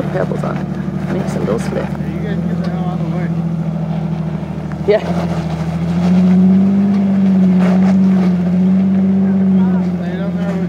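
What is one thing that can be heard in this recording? An off-road vehicle's engine rumbles and revs as it climbs a rocky slope.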